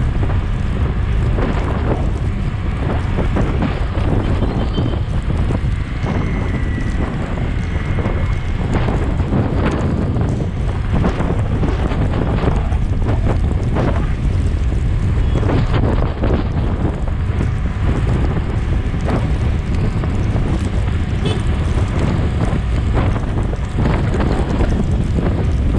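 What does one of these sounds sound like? Motorcycles and cars hum by in dense city traffic.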